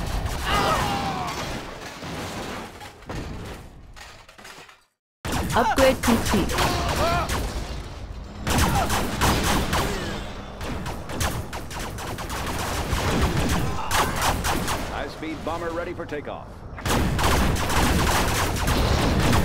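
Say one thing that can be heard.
Explosions boom and crackle in quick bursts.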